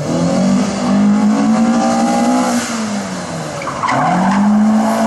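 A rally car engine revs hard and roars close by.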